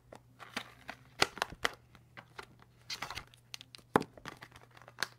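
Plastic markers clatter and click against each other in a case.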